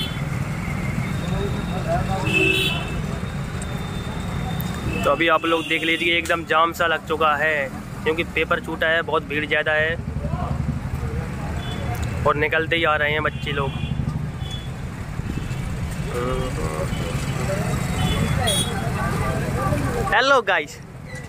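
Motorcycle engines rumble past in outdoor street traffic.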